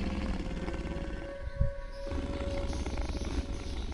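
Creatures snarl and growl.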